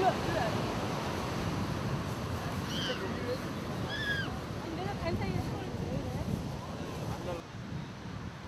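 A group of young men and women talk with animation outdoors, close by.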